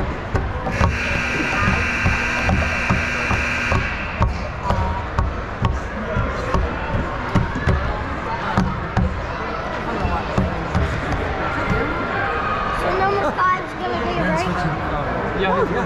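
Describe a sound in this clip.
Hockey sticks clack against the ice and puck.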